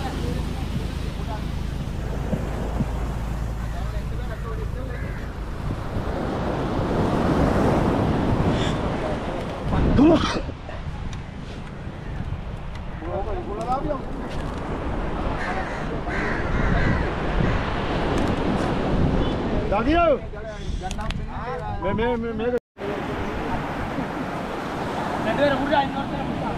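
Men talk with animation nearby outdoors.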